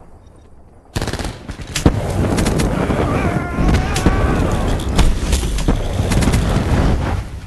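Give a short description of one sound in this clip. A flamethrower roars in long bursts.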